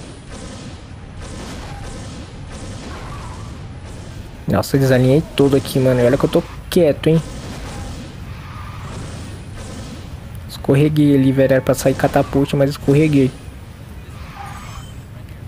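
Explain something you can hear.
A racing car engine roars steadily with whooshing boosts.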